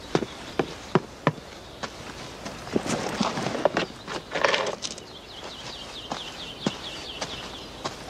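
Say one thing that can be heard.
Footsteps thud on wooden steps.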